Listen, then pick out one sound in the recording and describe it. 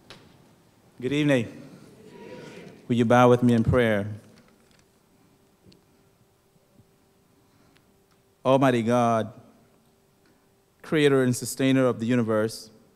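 A man speaks slowly and solemnly into a microphone over loudspeakers in a large hall, with long pauses.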